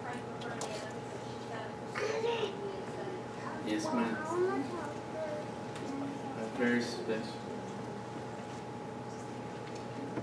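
An organ holds a soft, steady note.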